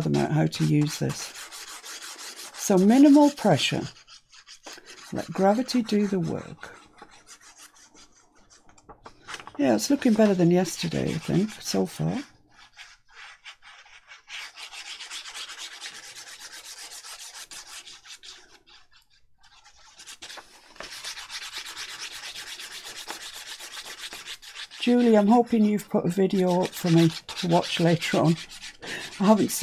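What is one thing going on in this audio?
A middle-aged woman talks calmly into a close microphone.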